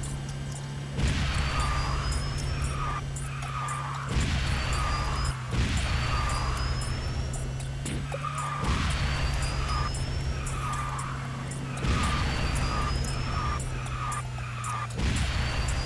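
A car boost whooshes in sudden bursts, again and again.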